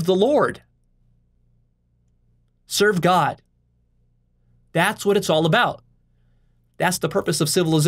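A man speaks calmly and closely into a microphone, in short phrases with pauses.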